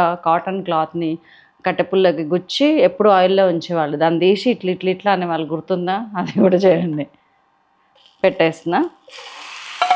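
A middle-aged woman speaks with animation close to a microphone.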